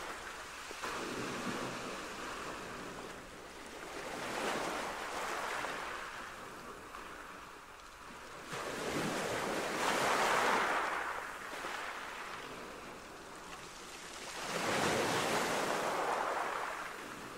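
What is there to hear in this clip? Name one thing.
Cars swish past on a wet road, one after another.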